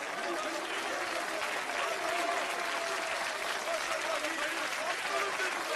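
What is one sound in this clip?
A crowd claps and cheers loudly.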